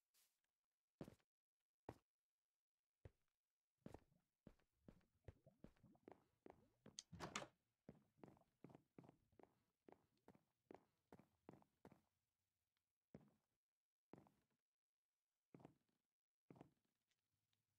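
Light footsteps tap in quick, uneven steps.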